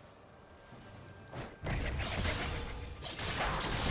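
Magic blasts and sword hits crash and whoosh in a fast fight.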